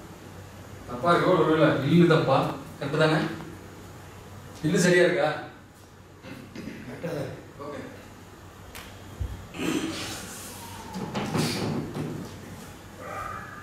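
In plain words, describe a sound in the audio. A man speaks expressively, dramatically, in a small echoing hall.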